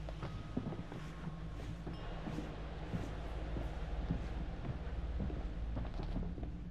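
Footsteps crunch on snowy ground.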